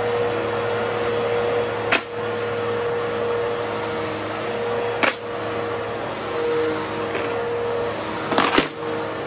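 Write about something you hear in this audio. An upright vacuum cleaner hums steadily as it runs over a rug.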